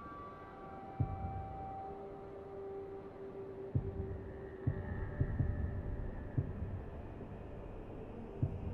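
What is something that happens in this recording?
Soft thuds sound as menu options are chosen in a game.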